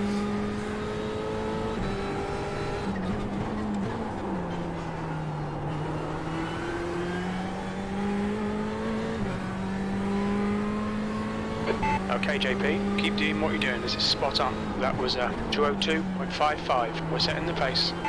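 A racing car engine drones steadily and shifts pitch through the gears.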